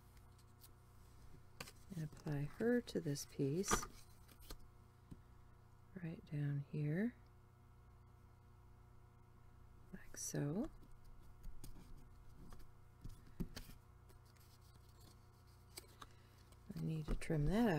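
Paper rustles as it is handled and pressed down.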